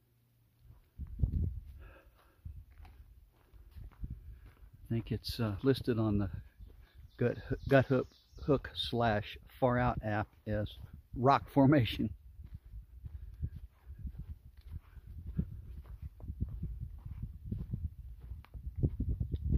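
Footsteps tread along a dirt trail.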